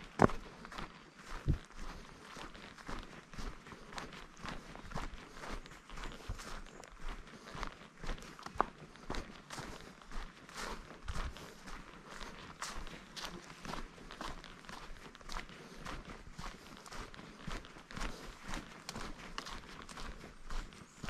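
Footsteps crunch steadily on dry leaves and a dirt path.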